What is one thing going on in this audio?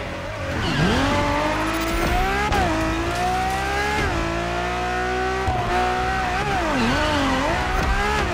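Tyres screech as a car slides through a corner.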